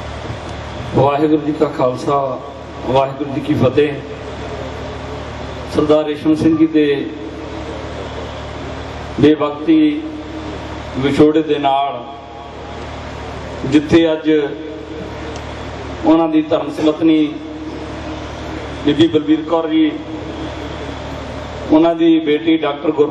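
A middle-aged man speaks slowly in short phrases through a microphone and loudspeakers, outdoors.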